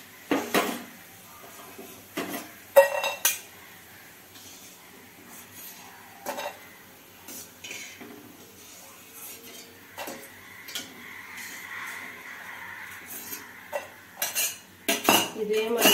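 A metal slotted spoon clinks against a steel pan and bowl.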